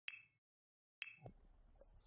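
A soft interface click sounds as a game menu closes.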